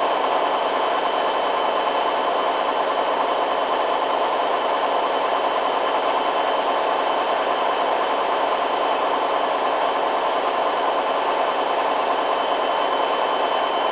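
A washing machine runs with a steady whirring hum.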